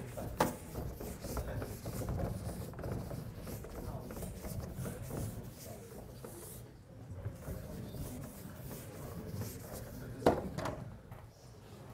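A felt eraser wipes across a chalkboard.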